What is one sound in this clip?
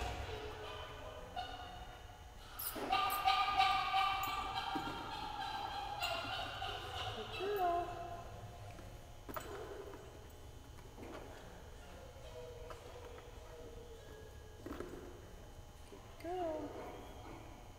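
A woman talks to a dog.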